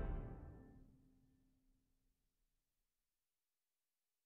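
A chamber ensemble's final chord rings out and fades away in a large hall.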